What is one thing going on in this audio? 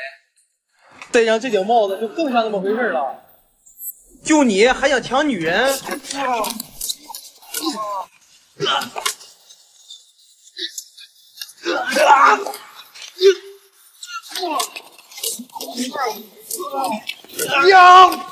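A young man speaks with animation nearby.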